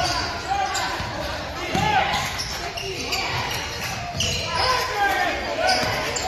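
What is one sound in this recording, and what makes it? A basketball bounces with dull thumps on a wooden floor.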